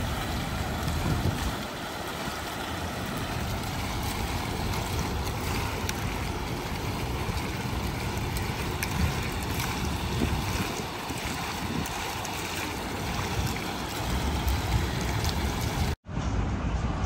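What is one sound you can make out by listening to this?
Water splashes steadily from fountain jets into a pool.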